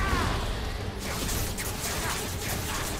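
Sword strikes hit with sharp clangs.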